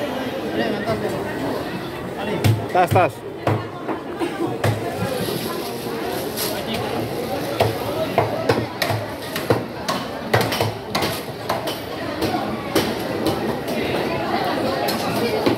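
Pieces of raw fish slap onto a wooden board.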